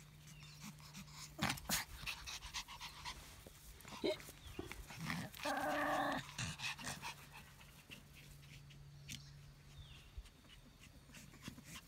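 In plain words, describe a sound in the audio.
Small dogs scamper and tussle on grass close by.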